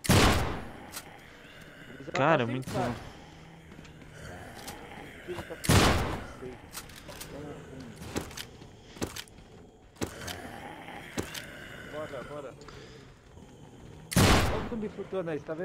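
Loud shotgun blasts boom with a short echo.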